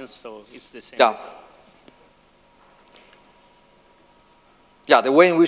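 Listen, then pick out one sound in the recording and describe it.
A man lectures calmly to an audience, heard through a microphone.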